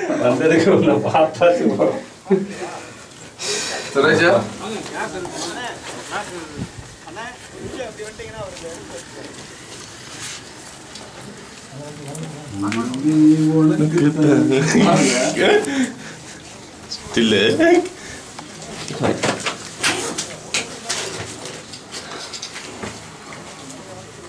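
Men talk nearby outdoors.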